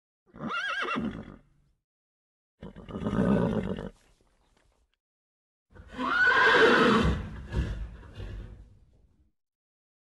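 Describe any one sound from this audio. Horses whinny and snort nearby.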